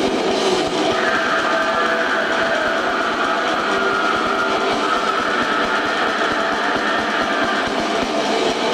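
A guitar plays a sustained high squealing lead.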